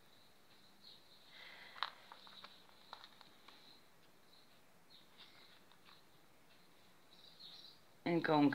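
Small beads click softly against each other.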